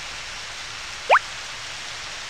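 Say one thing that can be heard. A quick rising electronic blip sounds as the dialogue closes.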